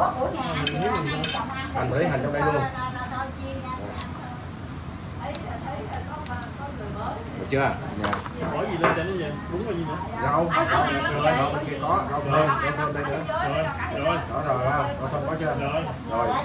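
Men talk with animation close by, in a lively conversation.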